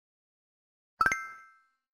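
A short game chime sounds as a tile is tapped.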